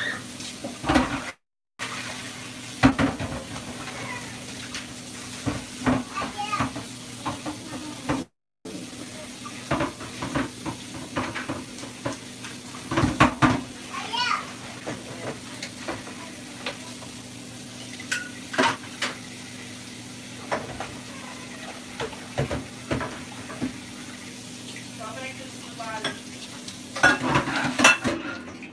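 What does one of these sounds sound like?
Dishes clink and clatter in a sink.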